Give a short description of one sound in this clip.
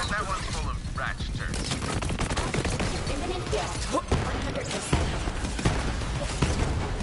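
Rapid gunfire rattles with loud bangs and explosions.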